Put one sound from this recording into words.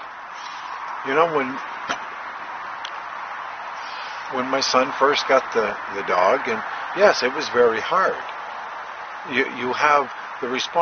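A middle-aged man talks with animation close to the microphone.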